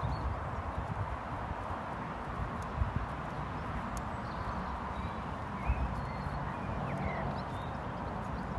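A horse's hooves thud softly on grass at a walk.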